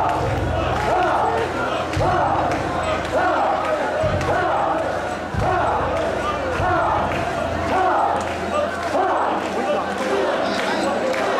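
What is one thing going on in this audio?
A crowd murmurs and talks all around.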